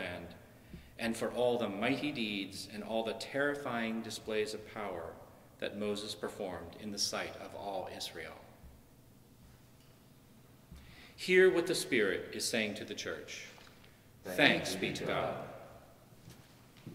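A middle-aged man reads aloud calmly through a microphone in an echoing room.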